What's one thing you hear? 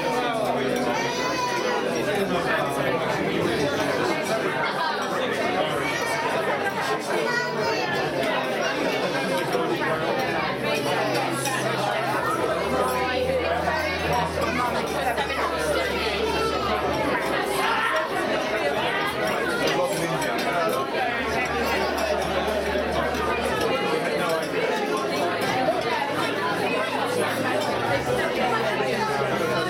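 A crowd of adults chatters loudly all around.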